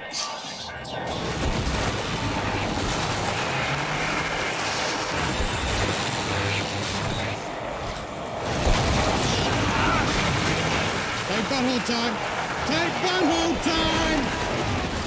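Guns fire rapidly in bursts.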